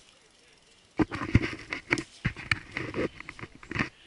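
A bicycle rolls and rattles over a bumpy dirt trail.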